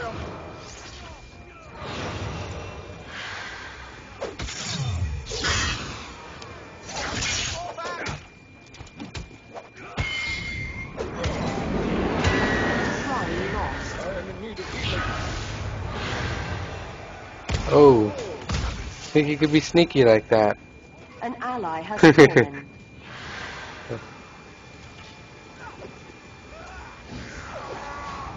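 Fire spells whoosh and crackle in a game battle.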